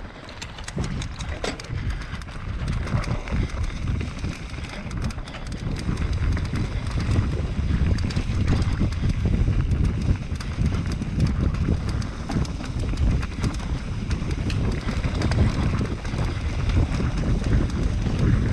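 Wind rumbles loudly over the microphone.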